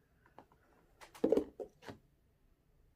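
A plastic cup clicks softly against another plastic cup.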